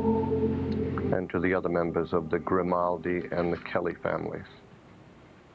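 An elderly man speaks quietly.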